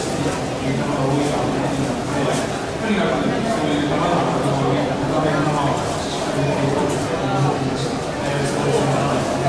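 A man speaks through a stadium loudspeaker, echoing in an open stadium.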